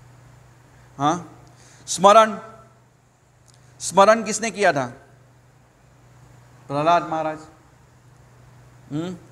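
A middle-aged man speaks calmly into a microphone, reading out in short phrases.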